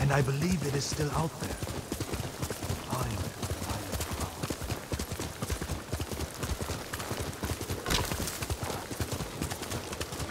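A horse gallops, its hooves thudding rapidly on soft ground.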